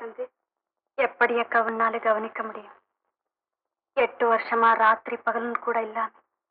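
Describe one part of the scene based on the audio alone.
A young woman speaks through an old film soundtrack.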